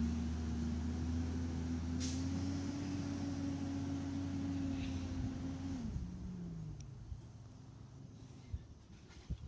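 A garbage truck engine rumbles nearby and then winds down as the truck drives away.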